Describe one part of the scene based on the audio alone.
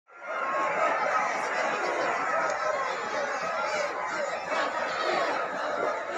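A large crowd cheers and chants outdoors.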